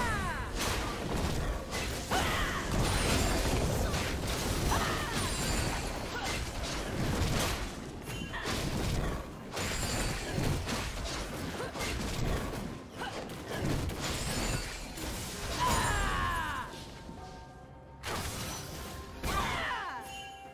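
Video game spell effects whoosh and crackle in quick bursts.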